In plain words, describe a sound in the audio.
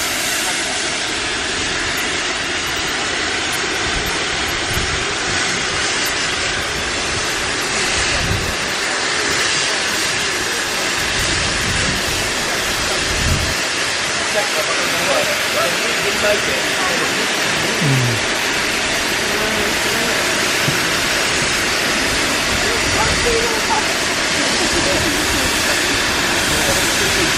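A steam locomotive's engine rumbles while idling.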